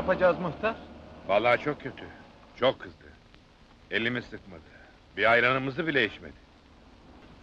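An older man answers calmly.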